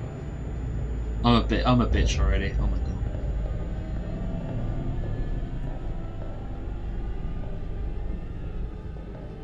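Footsteps walk slowly on a metal floor.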